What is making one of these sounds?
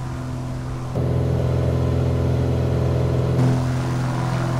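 A propeller plane's engine drones louder and closer from inside the cockpit.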